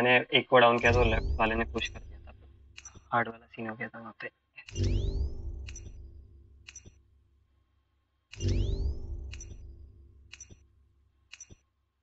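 A game countdown ticks at an even pace.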